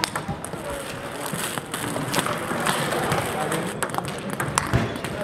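A table tennis ball clicks back and forth across a table.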